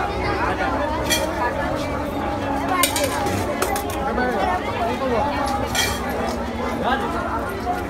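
A dense crowd of men and women talk and call out all around, close by.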